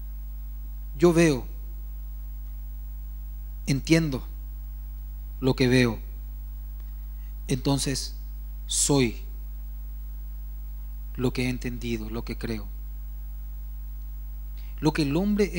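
A man speaks into a microphone in short bursts, heard over loudspeakers in a large echoing hall.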